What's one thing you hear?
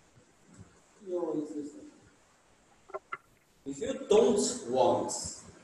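A young man speaks calmly nearby, as if teaching.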